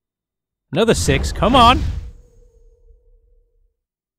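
A short game chime rings as a hero levels up.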